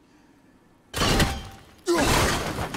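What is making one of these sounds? A thrown axe whooshes through the air.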